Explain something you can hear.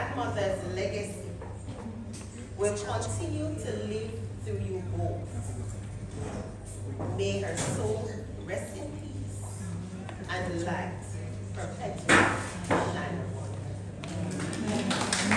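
A woman speaks through a microphone in an echoing room.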